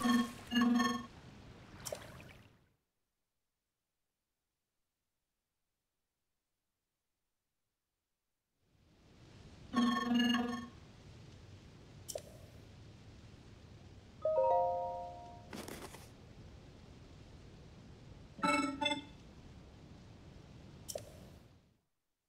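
Short electronic blips and chimes sound in bursts.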